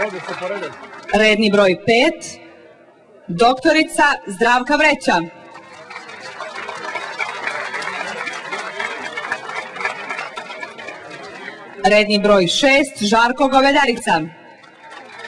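A woman speaks through a loudspeaker in short announcements, echoing outdoors.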